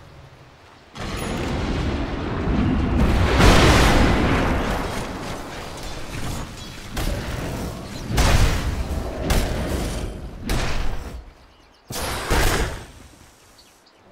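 Spell effects whoosh and crackle in a fight.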